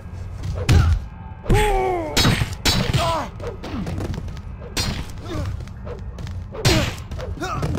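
Heavy punches land with loud thuds.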